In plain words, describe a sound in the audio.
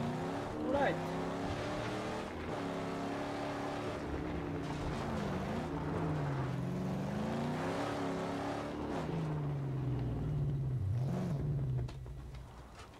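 A car engine roars and revs, rising and falling in pitch.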